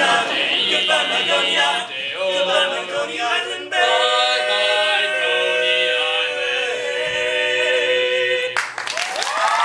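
A group of young men sings in close harmony without instruments.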